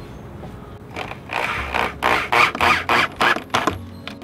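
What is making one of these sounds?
A hand tool scrapes rapidly in short bursts close by.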